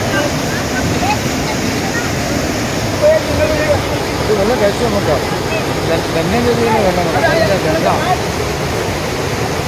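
A mountain stream rushes loudly over rocks.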